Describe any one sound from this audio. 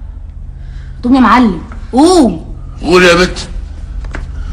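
An elderly man cries out in anguish several times, close by.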